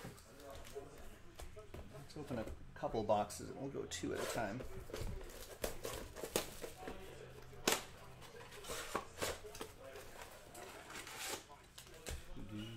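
Packaging rustles and crinkles as it is handled.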